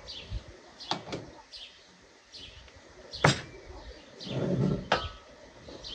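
Glass jars clink against each other.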